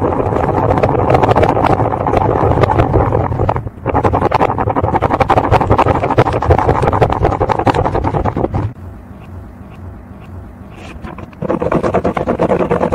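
A plastic gear clicks and rattles as a pen drives it around a ring.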